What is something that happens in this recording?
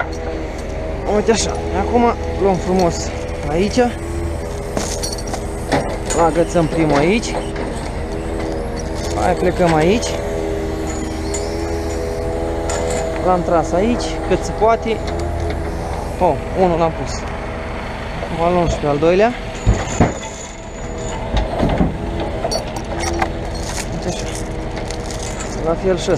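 Metal chains rattle and clank against logs.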